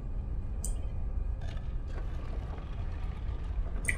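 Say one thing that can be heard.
A heavy stone ring grinds as it turns.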